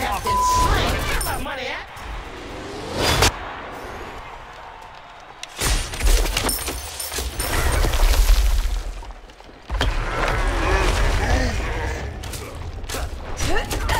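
Video game combat sounds play, with magical blasts and sharp impacts.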